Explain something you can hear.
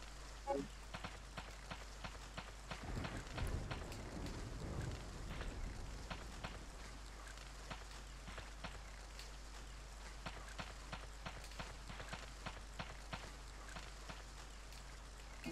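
Footsteps hurry quickly over the ground.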